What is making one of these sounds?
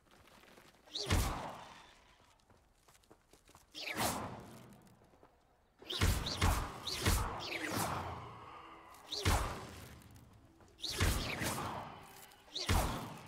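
Magic spells burst and whoosh loudly, again and again.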